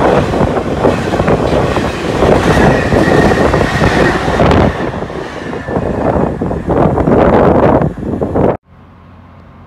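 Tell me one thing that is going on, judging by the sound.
A freight train rattles and roars past close by.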